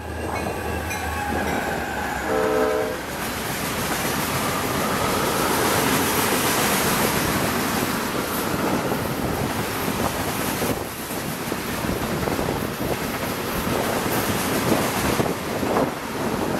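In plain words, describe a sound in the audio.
Freight cars roll by with wheels clattering and rumbling on the rails.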